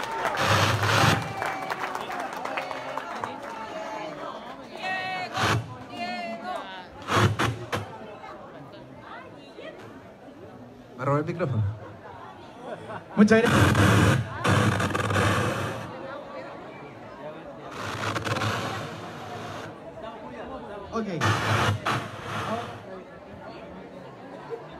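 A crowd chatters and cheers loudly in a large echoing hall.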